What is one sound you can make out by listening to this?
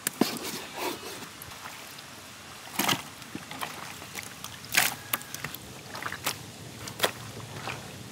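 Pieces of meat clatter softly into a metal dish.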